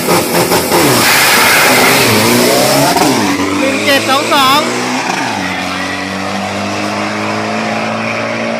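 A truck engine roars as the truck launches and speeds away.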